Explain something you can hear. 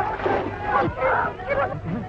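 A crowd of women and men shout together.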